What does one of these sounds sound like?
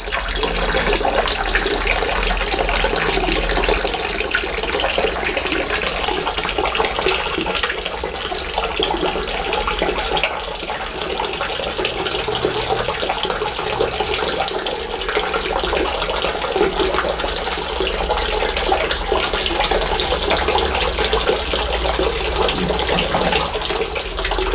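Water pours from a pipe and splashes into a pond.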